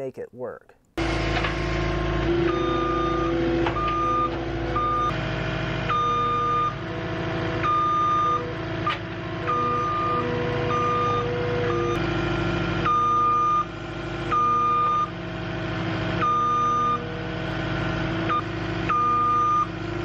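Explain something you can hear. A tracked loader's diesel engine runs loudly and revs up and down.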